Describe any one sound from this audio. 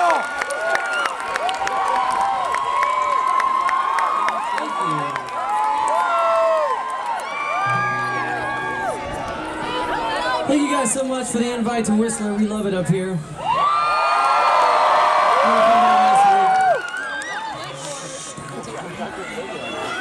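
A crowd cheers and whistles loudly outdoors.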